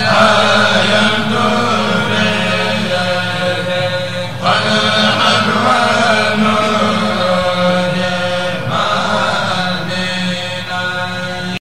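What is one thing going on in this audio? A group of men chant together in unison through microphones, echoing in a large space.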